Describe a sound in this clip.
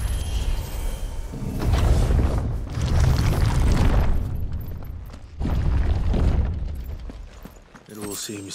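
A deep rumbling whoosh swells and fades.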